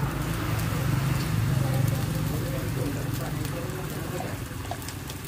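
Beaten egg splashes onto a sizzling griddle.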